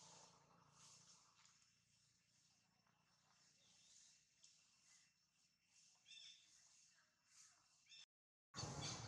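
A monkey chews food softly nearby.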